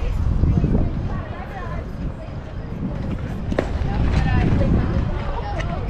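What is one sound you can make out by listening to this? Players call out across an open field.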